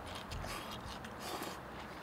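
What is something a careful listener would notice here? A man slurps noodles.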